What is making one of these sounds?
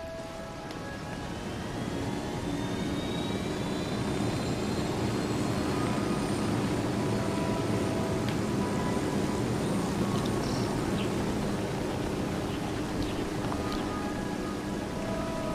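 A helicopter's rotor drones steadily, growing louder as it comes closer.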